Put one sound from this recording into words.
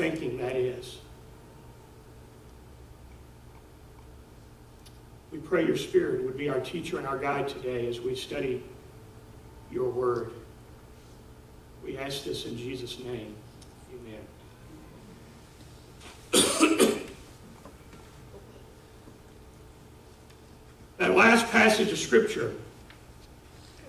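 A middle-aged man speaks calmly in pauses through a microphone.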